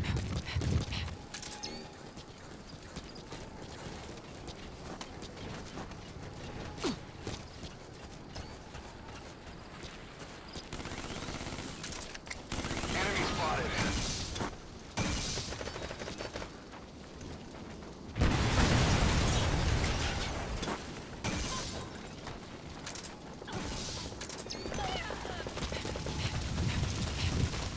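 Footsteps crunch softly on gravel and dirt.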